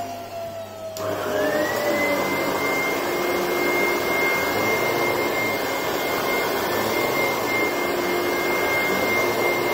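A second vacuum cleaner starts up with a rising whine and runs steadily.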